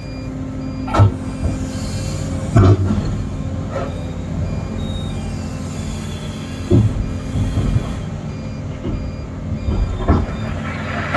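Metal clanks as an excavator bucket knocks.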